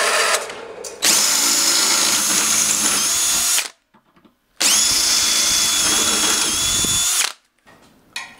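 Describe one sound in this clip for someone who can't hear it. A cordless drill bores through a steel plate.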